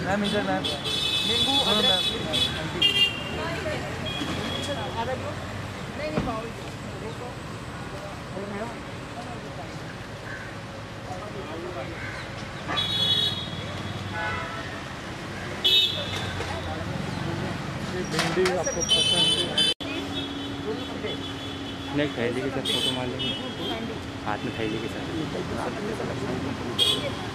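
Traffic and street noise hum outdoors.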